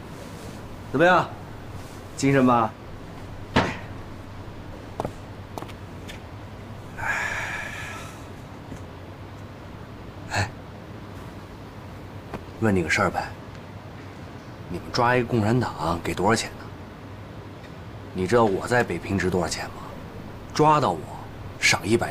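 A middle-aged man speaks in a low, gruff voice, close by.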